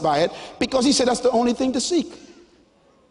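A man speaks loudly and with animation through a microphone in a large hall.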